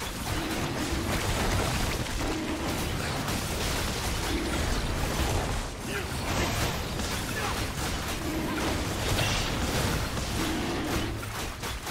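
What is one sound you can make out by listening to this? Spell effects crackle, whoosh and burst in a video game battle.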